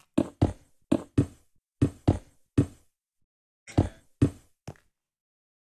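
Short, sharp clicks sound as blocks are placed in quick succession.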